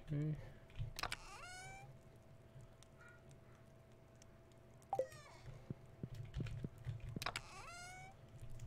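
A video game menu opens with a quick rising chime.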